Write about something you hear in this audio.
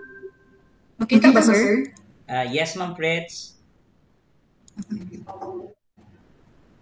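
A middle-aged man speaks calmly, heard through an online call.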